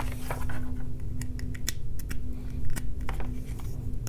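A cable plug clicks into a charger.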